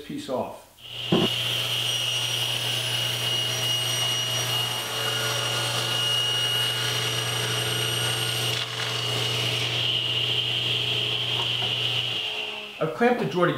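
A table saw whirs steadily as it cuts through a wooden board.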